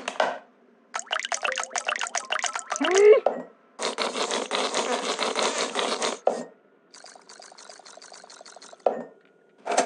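A cartoon creature chews and slurps food noisily in quick bursts.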